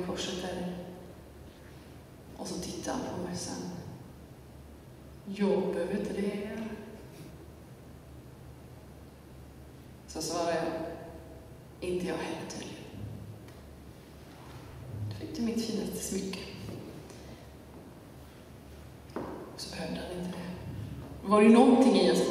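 A young woman sings slow phrases in an echoing hall.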